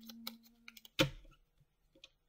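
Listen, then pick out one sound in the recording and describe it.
A deck of cards is tapped against a table.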